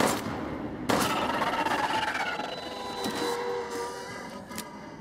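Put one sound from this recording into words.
A creature shrieks and groans.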